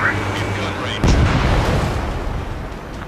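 A cannon fires a rapid burst.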